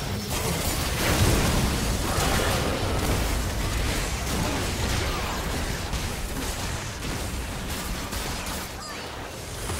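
Hits and explosions thump in quick bursts.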